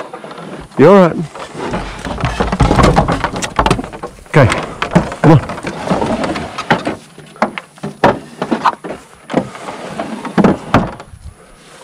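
Wooden boards knock and clatter close by.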